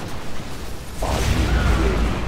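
Explosions boom with a deep rumble in a strategy video game.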